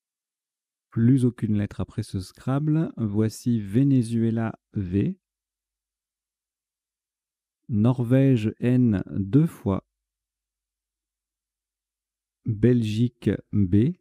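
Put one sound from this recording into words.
A man talks into a microphone, close and lively, in short bursts.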